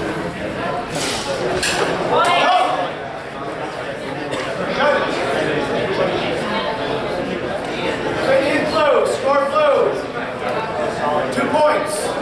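A man speaks loudly in an echoing hall.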